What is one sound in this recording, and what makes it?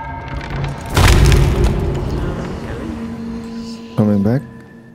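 A deep rushing whoosh swells and slowly fades.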